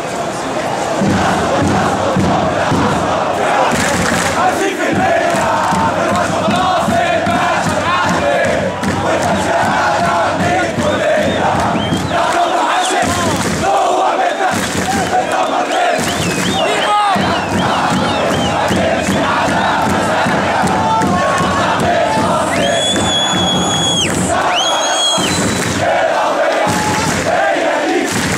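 A drum beats in a steady rhythm.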